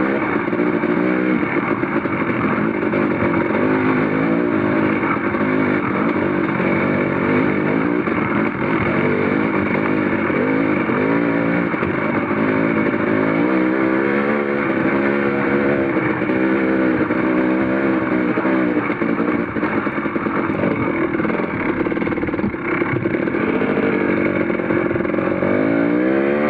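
A dirt bike engine revs and drones up close, rising and falling in pitch.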